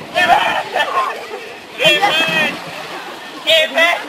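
A boy dives and splashes into the water.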